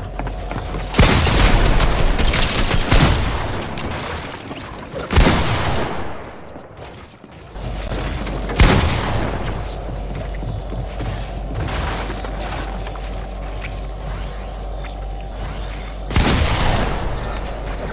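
Gunshots crack loudly in short bursts.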